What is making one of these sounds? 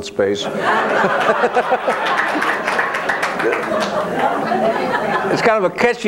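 An elderly man laughs through a microphone.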